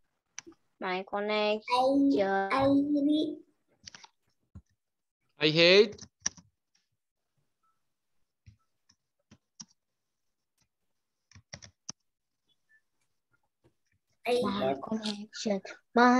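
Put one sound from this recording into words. A young child speaks in short, lively phrases through an online call.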